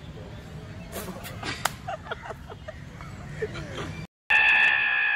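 Young men burst out laughing.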